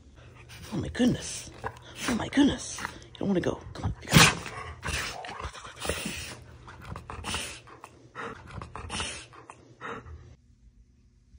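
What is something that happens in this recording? A dog grumbles and growls playfully up close.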